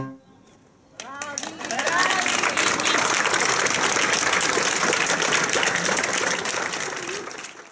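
People in a crowd cheer and call out.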